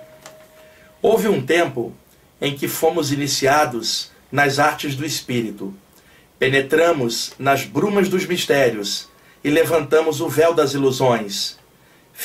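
A middle-aged man reads aloud into a microphone, close up and clear.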